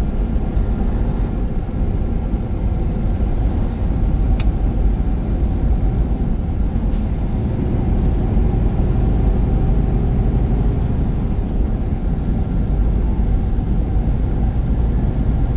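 A car's engine hums steadily from inside the car.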